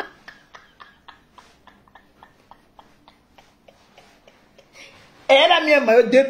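A woman laughs softly in short bursts.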